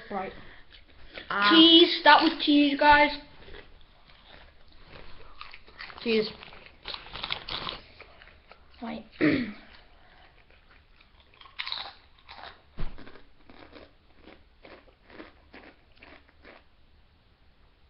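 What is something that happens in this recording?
A boy crunches a crisp.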